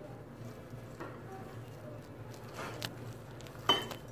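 Hands mix and rub dry crumbs in a bowl.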